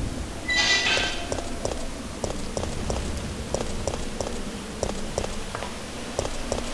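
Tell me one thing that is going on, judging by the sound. Footsteps tread steadily on a hard street littered with debris.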